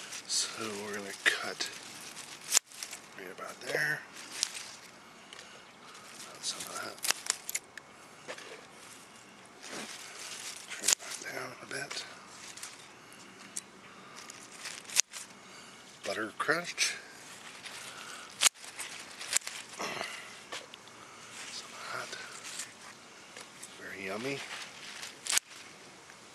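Lettuce leaves rustle as they are handled.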